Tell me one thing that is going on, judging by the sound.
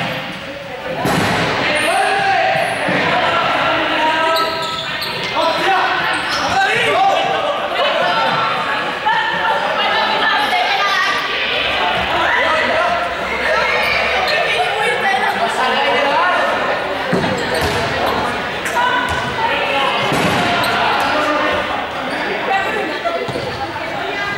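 Children shout and chatter in a large echoing hall.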